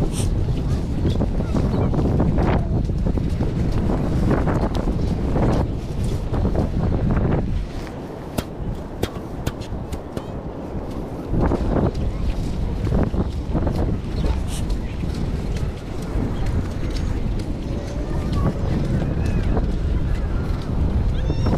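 Footsteps squelch on wet sand.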